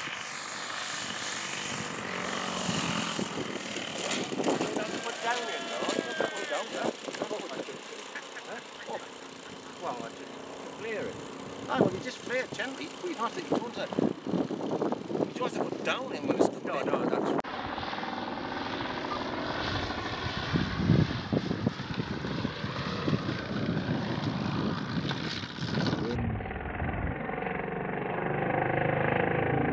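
A small model plane engine buzzes as the plane lands and takes off.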